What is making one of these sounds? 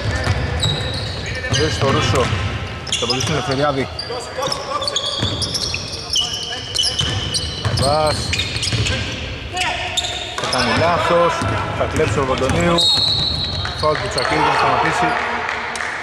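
Male players shout across an echoing hall.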